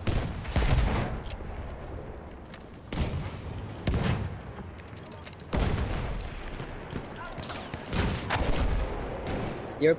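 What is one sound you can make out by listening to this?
A bolt-action rifle fires sharp shots.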